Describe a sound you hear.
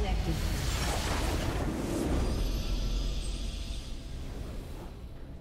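A base explodes with a deep rumbling blast.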